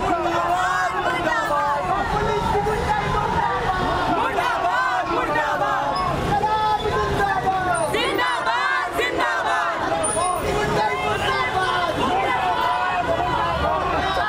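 A crowd of men and women shout and chant loudly outdoors.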